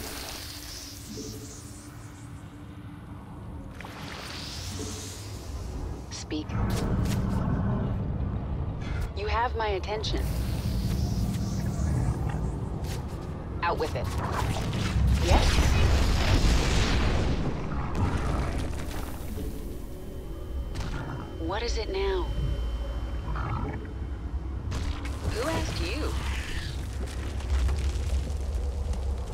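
Game sound effects and rumbling play throughout.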